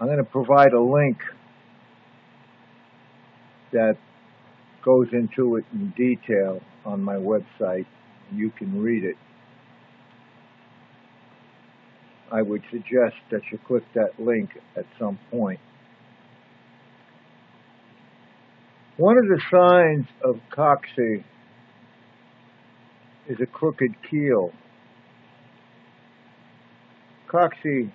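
An elderly man speaks calmly and close to a microphone, with pauses.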